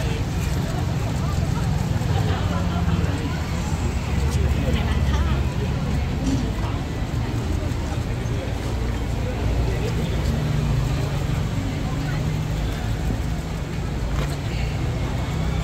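A crowd murmurs and chatters nearby outdoors.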